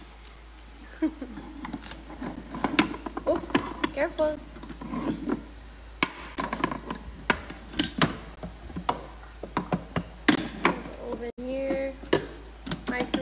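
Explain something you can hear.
Toy pots and utensils clatter and knock.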